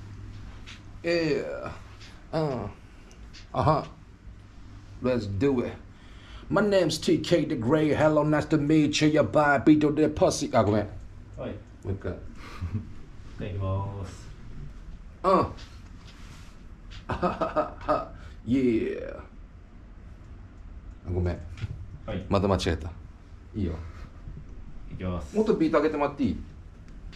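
A man sings and raps close to a microphone.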